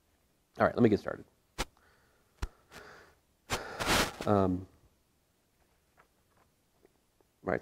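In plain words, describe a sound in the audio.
Pages of a book rustle as a man leafs through it.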